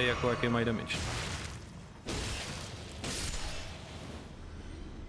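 Swords clash and swing in a fight.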